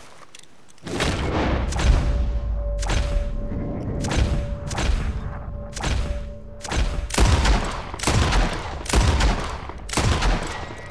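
A shotgun fires loud blasts again and again.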